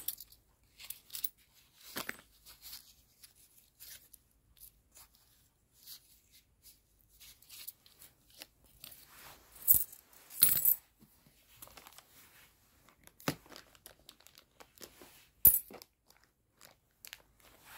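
Plastic wrap crinkles and rustles under fingers.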